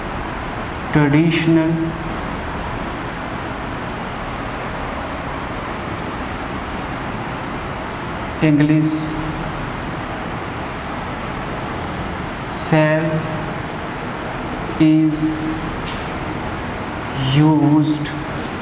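A man speaks calmly in short phrases nearby.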